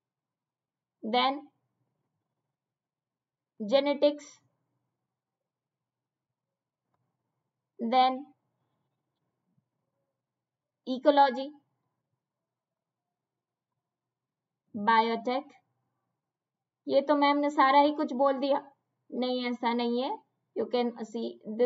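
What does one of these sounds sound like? A young woman speaks calmly into a microphone in short phrases with pauses between them.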